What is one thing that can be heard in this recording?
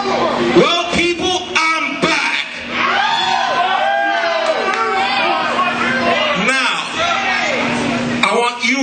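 A young man raps rhythmically into a microphone through loudspeakers.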